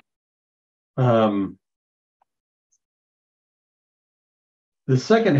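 A middle-aged man speaks briefly over an online call.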